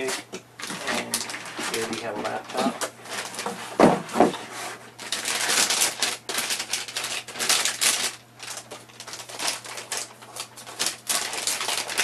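A plastic wrapper rustles and crinkles as it is handled.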